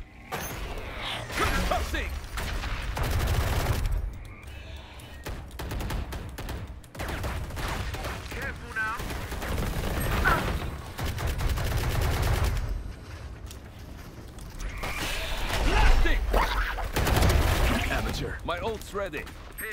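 Gunfire bursts out in short, loud volleys.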